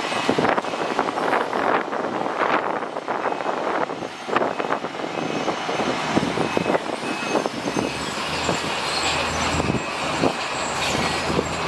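Rocks and dirt tumble and clatter out of a dump truck's raised bed.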